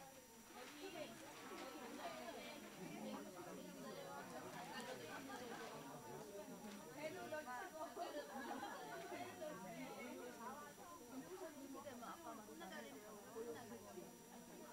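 Many women chatter at once in a room with a light echo.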